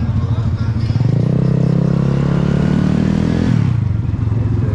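A motorcycle engine revs up and then drops back.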